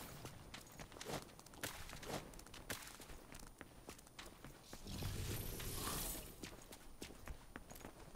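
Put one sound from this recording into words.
Footsteps run quickly on a hard street.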